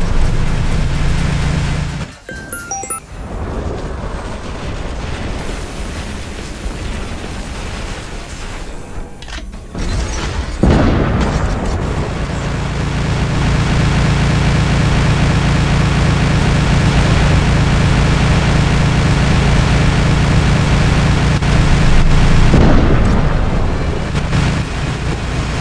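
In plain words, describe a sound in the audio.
Heavy guns fire in rapid, loud bursts.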